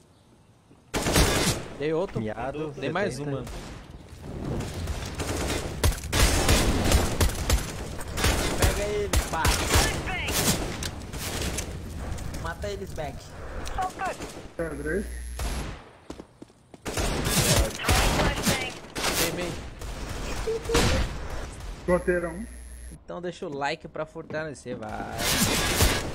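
Gunshots crack rapidly from a video game.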